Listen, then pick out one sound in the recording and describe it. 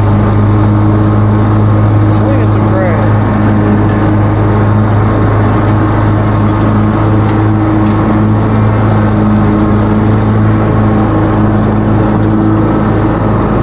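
Mower blades cut through grass with a whirring rush.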